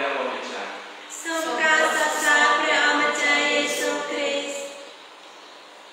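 A man chants in a sung voice through a microphone, echoing in a large hall.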